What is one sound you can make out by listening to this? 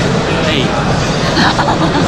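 A man laughs nearby.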